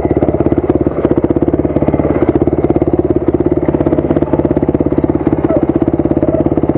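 A dirt bike engine putters loudly at low speed, close by.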